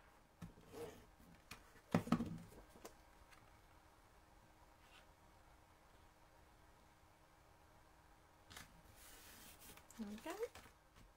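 Sheets of card stock rustle and slide against each other under hands.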